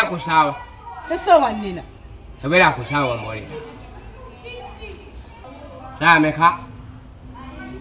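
A young man speaks loudly and with animation, close by.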